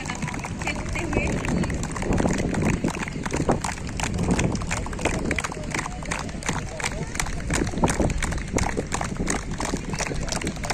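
A group of people clap their hands outdoors.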